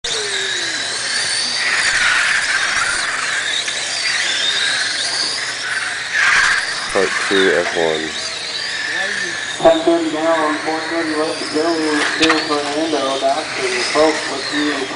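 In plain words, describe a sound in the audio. Small electric racing cars whine high as they speed past, rising and falling in pitch.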